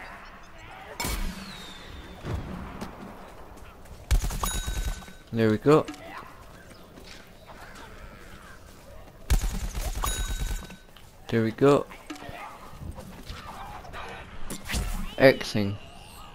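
Gunfire from a game blasts in short bursts.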